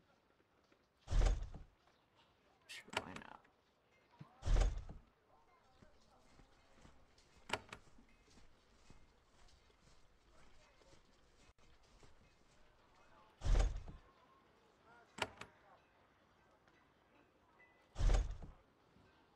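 A game menu plays short sounds as options are picked.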